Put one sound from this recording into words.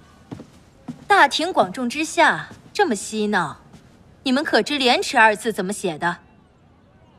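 A young woman speaks with a cutting, mocking tone.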